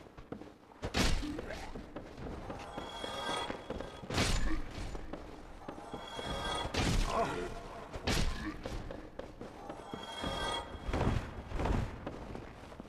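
Metal weapons clash and strike with heavy blows.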